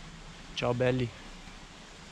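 A young man speaks briefly and casually, close by.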